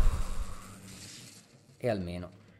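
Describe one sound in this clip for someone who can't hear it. Electric zapping crackles from a game.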